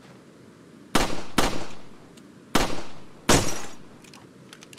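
Gunshots ring out loudly, one after another.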